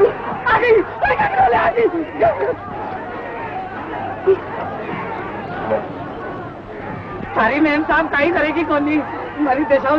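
A crowd of men cheers and murmurs.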